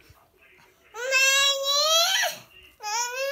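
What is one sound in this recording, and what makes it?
A small child squeals loudly and briefly.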